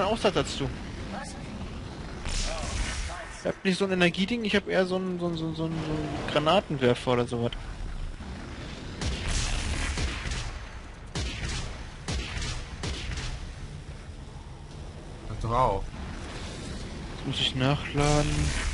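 Energy guns fire in sharp bursts.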